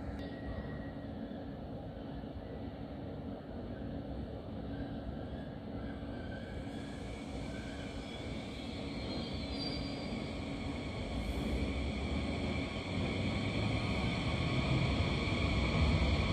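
A high-speed train rolls slowly into a station with a rising hum and whine.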